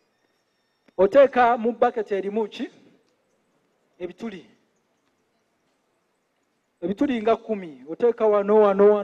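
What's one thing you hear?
A man speaks calmly in pauses, close by.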